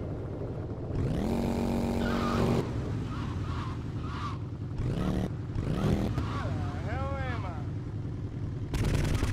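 A motorcycle engine revs and roars.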